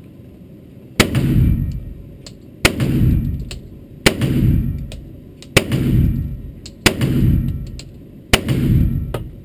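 Pistol shots ring out one after another, booming in an echoing indoor range.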